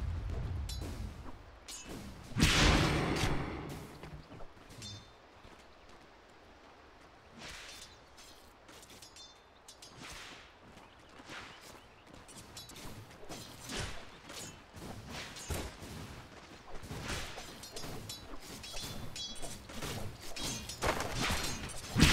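Sharp hits and magic blasts clash in a fantasy battle.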